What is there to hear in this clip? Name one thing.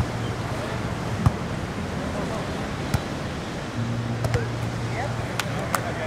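A volleyball thumps off players' hands.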